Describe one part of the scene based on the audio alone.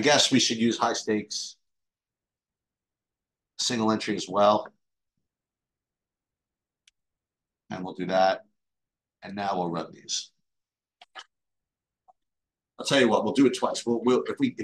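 A man talks calmly and close to a microphone, in bursts with pauses.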